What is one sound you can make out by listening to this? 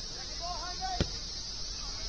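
A soccer ball is kicked with a sharp thud.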